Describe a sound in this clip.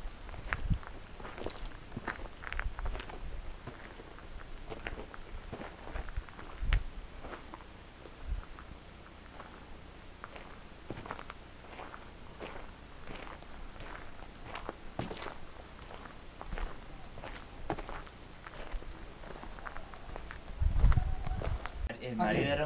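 Footsteps crunch on a leafy gravel path.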